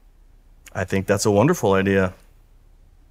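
A middle-aged man speaks calmly up close.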